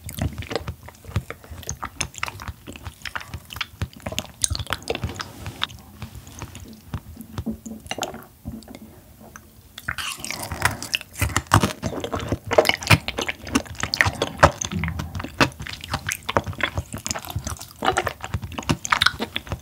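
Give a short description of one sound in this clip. Chopsticks tap against a plate.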